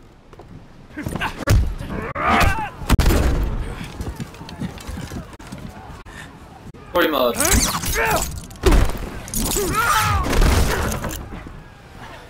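Heavy blows land with loud thuds in a scuffle.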